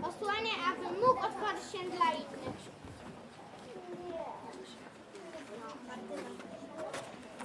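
A young boy speaks loudly and clearly.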